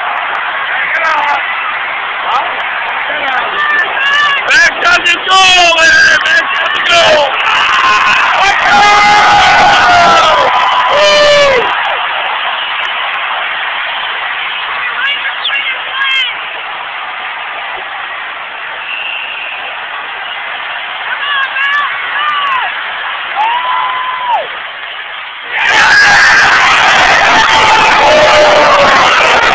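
A large crowd cheers and shouts loudly in a big echoing arena.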